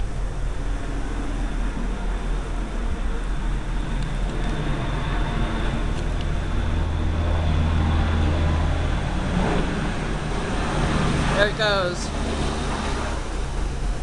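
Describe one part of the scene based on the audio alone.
A four-engine turboprop plane drones low overhead and passes.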